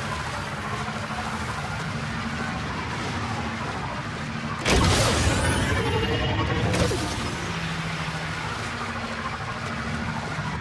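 Water sprays and splashes under spinning tyres, surging loudly for a moment.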